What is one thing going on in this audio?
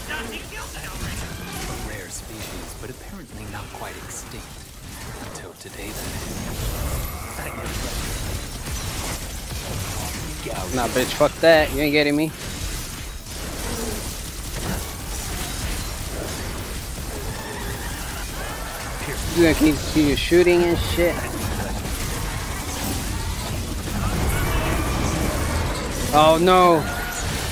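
Blades slash and clang in a fast fight.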